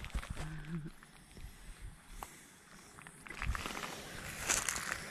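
Footsteps crunch on loose stones and gravel.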